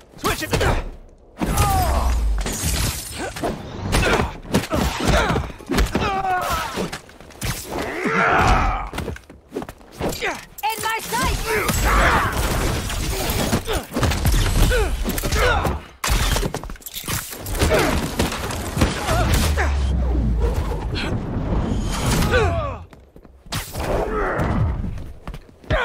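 Punches and kicks thud and crack in a fast fight.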